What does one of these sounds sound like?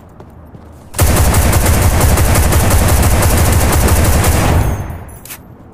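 A rifle fires in a rapid, loud burst.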